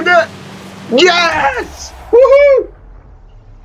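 A young man cheers loudly.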